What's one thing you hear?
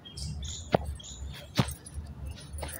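Feet land with sharp thuds as a man jumps.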